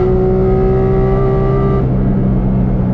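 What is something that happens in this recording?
A car engine roars loudly at high speed.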